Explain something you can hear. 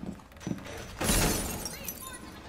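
A loud explosion bursts and crashes with flying debris.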